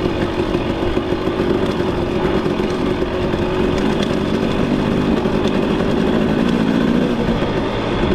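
Tyres crunch and rattle over loose gravel.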